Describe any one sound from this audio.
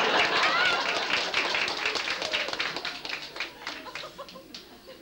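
An audience claps and cheers in a large room.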